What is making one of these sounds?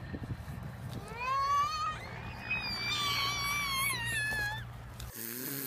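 Young toddlers squeal and babble playfully.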